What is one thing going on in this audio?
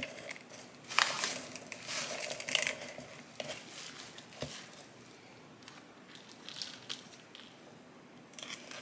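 Soil and bark chunks rustle and pour into a pot.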